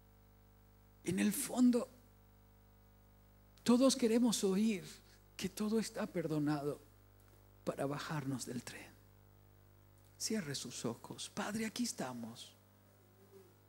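A middle-aged man speaks with feeling into a microphone, pausing between phrases.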